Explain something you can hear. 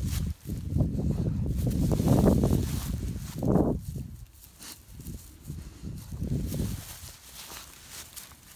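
Dry grass rustles and crunches under a dog's paws.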